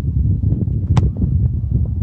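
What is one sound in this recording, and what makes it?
A soccer ball is kicked with a sharp thump.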